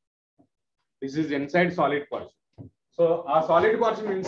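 A man lectures calmly and clearly, close to a microphone.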